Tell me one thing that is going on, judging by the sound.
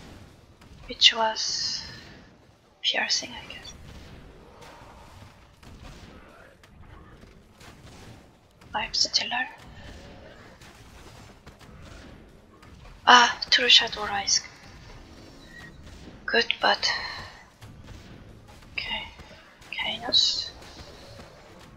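Game towers fire magic bolts with sharp zapping bursts.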